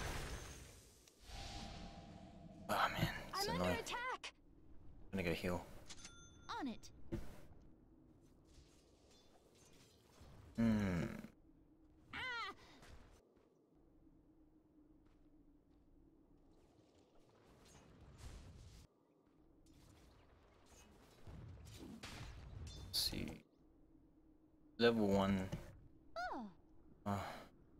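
Fantasy game sound effects whoosh and clash.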